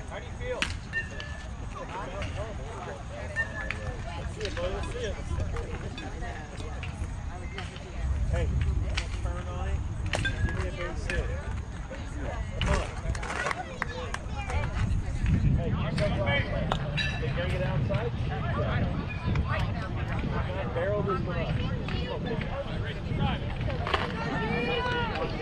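Voices of young players call out across a field.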